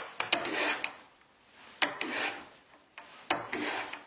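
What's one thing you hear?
A hand plane shaves wood with rasping strokes.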